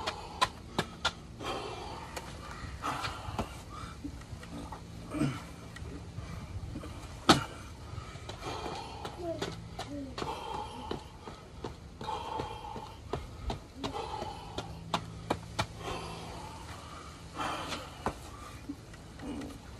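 A man talks nearby, calmly and with pauses.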